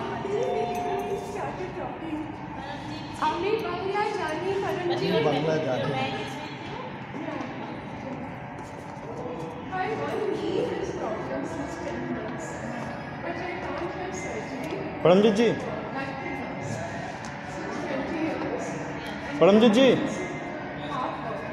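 Women talk casually nearby.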